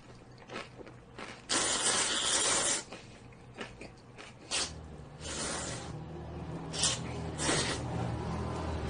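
A young man slurps noodles.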